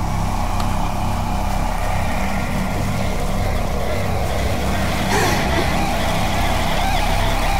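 A torch flame crackles and hisses softly.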